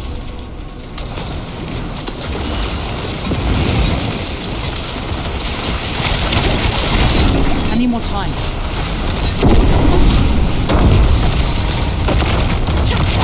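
Game combat sounds clash and boom.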